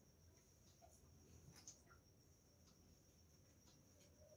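A small metal figure clinks softly as it is set down on a metal plate.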